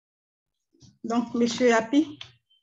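A second woman speaks calmly, close to a computer microphone.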